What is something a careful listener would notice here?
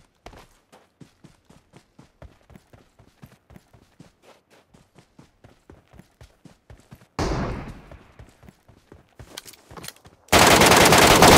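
Footsteps run over grass and pavement in a video game.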